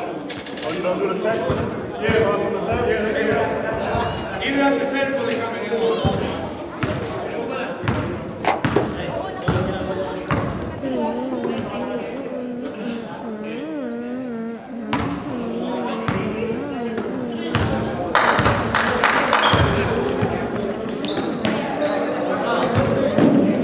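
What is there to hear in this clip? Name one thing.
Men talk and call out in a large echoing gym.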